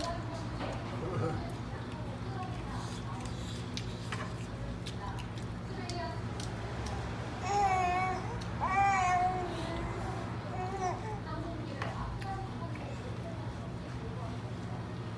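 Chopsticks clink against dishes.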